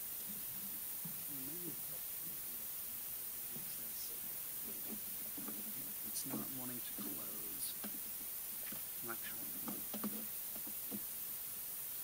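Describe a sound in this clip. A man speaks faintly at a distance.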